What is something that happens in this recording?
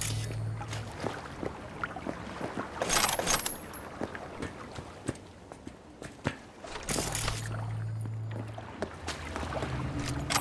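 Footsteps tap steadily on a hard floor and metal stairs.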